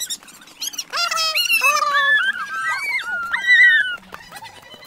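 A boy calls out loudly nearby.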